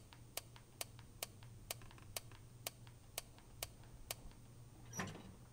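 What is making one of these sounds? A safe's combination dial clicks as it turns.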